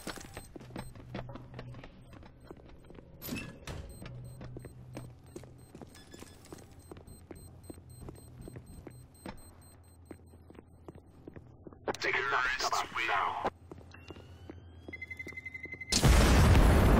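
Footsteps patter quickly on a hard floor.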